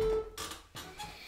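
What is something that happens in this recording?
A saxophone plays a short note.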